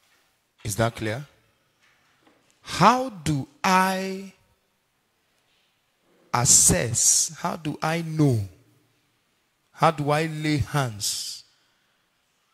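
A man speaks with emphasis into a microphone, in bursts with pauses.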